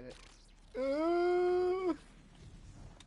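A grappling line launches with a sharp whooshing tone.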